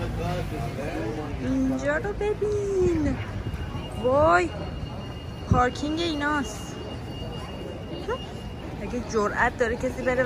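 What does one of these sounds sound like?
Pigeons coo nearby.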